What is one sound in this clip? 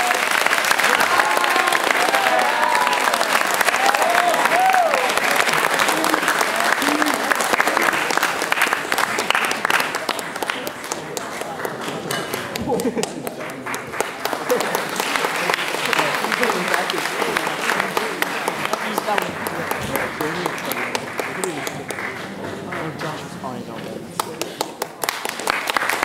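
A piano plays along with the choir.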